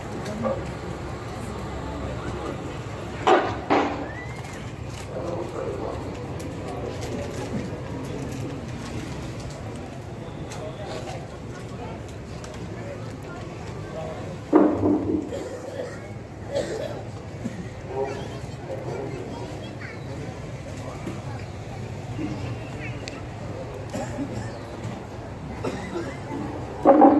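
A large crowd murmurs and chatters softly outdoors.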